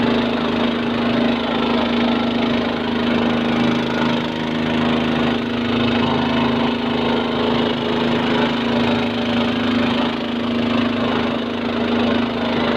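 A boat's outboard motor drones steadily and loudly.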